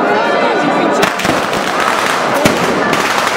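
Firecrackers burst with sharp bangs.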